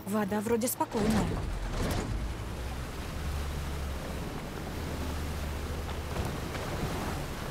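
Water splashes and rushes against a moving boat's hull.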